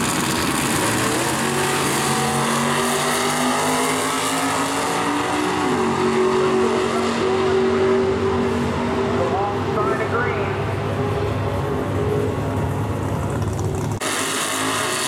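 Two car engines roar loudly as the cars launch and speed away, their pitch rising through the gears.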